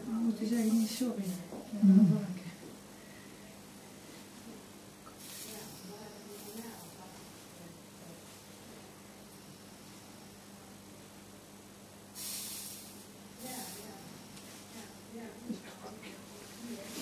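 An electric hair clipper buzzes steadily.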